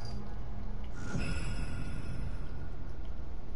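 A monster roars loudly.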